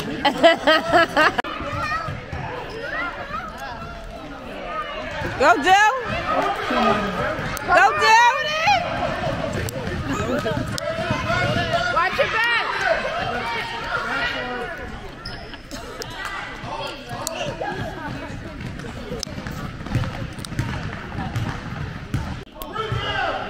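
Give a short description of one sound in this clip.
A crowd of spectators shouts and cheers in an echoing gym.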